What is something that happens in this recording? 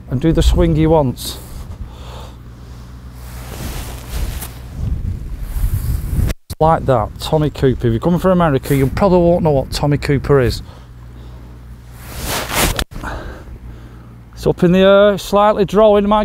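A man talks calmly and clearly, close to a microphone.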